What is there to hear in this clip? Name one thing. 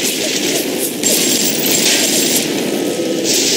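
A submachine gun fires a rapid burst of shots.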